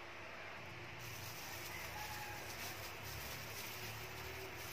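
A plastic glove crinkles and rustles.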